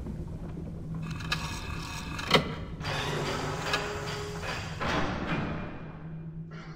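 A heavy metal mechanism hisses and grinds as it turns.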